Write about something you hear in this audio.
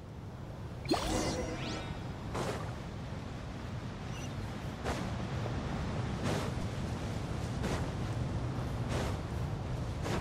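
Footsteps run over sand.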